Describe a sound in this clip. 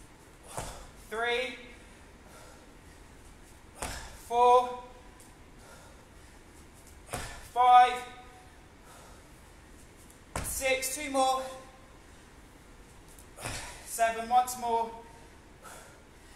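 A man grunts loudly with effort.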